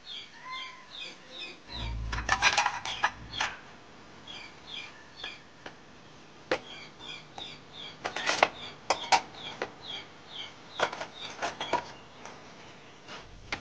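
Plastic and metal dishes clink and clatter as they are stacked.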